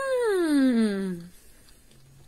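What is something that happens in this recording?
A woman makes a long, falling vocal sound close up.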